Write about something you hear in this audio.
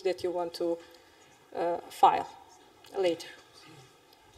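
A woman speaks briefly through a microphone in a large room.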